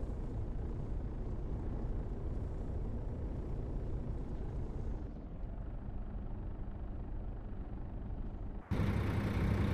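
A bus engine hums low and steady from inside the cabin.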